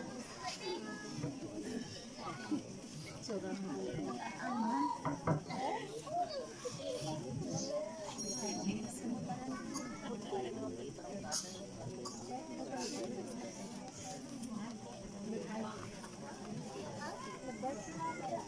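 A large crowd of men and women chatter outdoors.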